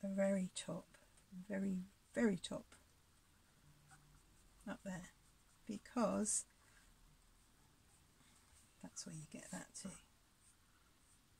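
A paintbrush softly strokes across canvas.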